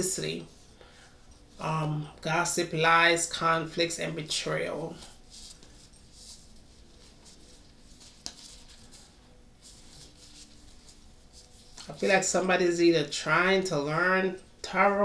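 Playing cards shuffle softly in a woman's hands.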